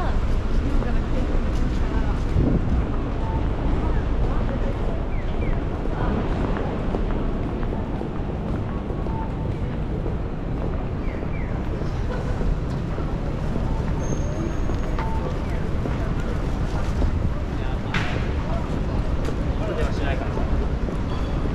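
A busy city street hums with crowd noise outdoors.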